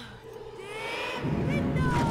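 A magic spell whooshes with a sparkling shimmer.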